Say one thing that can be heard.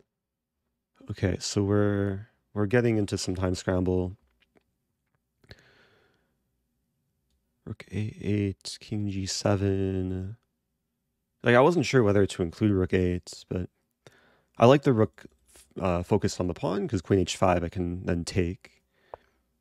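A young man speaks calmly and thoughtfully into a close microphone, pausing now and then.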